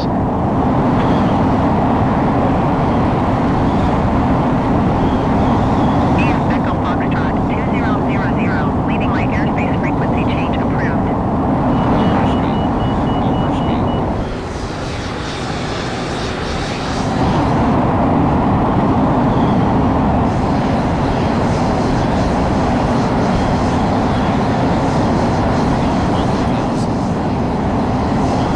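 A jet engine roars steadily, briefly dropping quieter midway.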